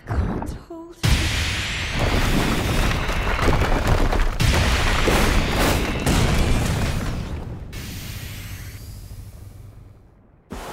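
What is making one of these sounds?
A beam of energy blasts down with a loud, roaring rush.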